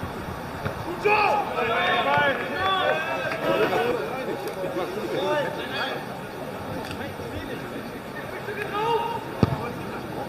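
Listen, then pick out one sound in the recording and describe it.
Men shout and call to each other across a grass pitch outdoors.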